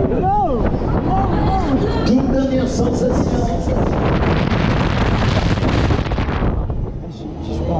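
Wind rushes loudly past on a fast spinning fairground ride.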